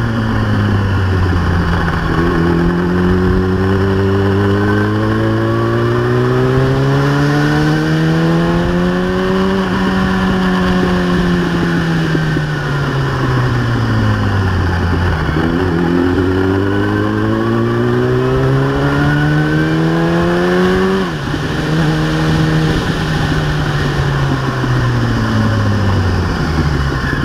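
A motorcycle engine revs up and down as it accelerates and slows through the gears.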